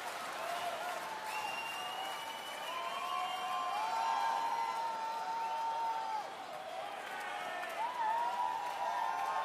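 A large crowd cheers and sings in a big echoing arena.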